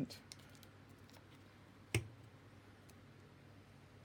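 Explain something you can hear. A plastic cap clicks onto a glue stick.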